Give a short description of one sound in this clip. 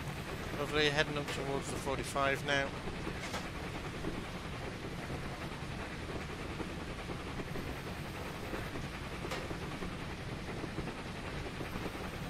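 A steam locomotive rumbles steadily along the track.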